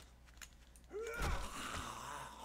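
A fist strikes a body with a dull thud.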